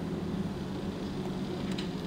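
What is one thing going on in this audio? A laser cutter hums and sizzles as it cuts into metal.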